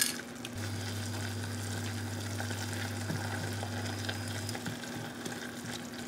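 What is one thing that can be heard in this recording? A spatula scrapes and stirs in a pot.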